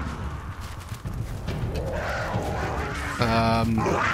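A flaming arrow crackles and hisses.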